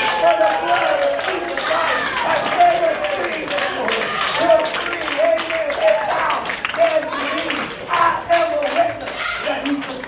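A crowd of men and women pray aloud and call out.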